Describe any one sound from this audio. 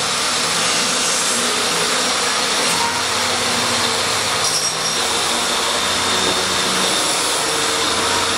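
A plunge saw whines loudly as it cuts through a panel.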